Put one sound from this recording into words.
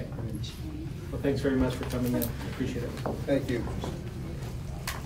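A middle-aged man speaks briefly and calmly into a microphone.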